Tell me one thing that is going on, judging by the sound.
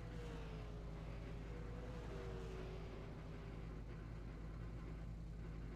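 A race car engine idles with a low steady rumble.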